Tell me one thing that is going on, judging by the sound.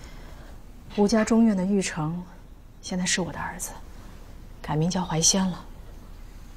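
A woman speaks calmly and quietly nearby.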